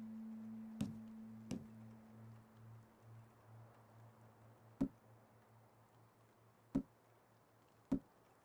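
A menu selection clicks sharply several times.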